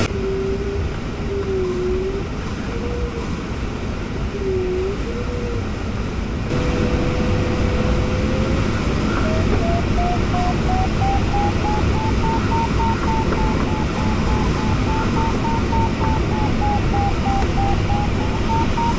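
Wind rushes loudly past a glider's canopy.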